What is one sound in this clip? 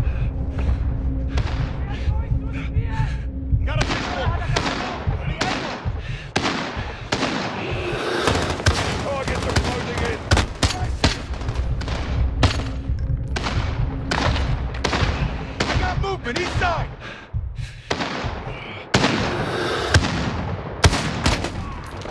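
Gunshots crack again and again.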